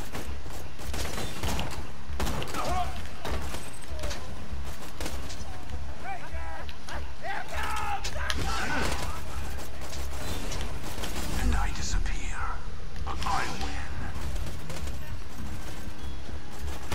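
A sniper rifle fires sharp, echoing shots again and again.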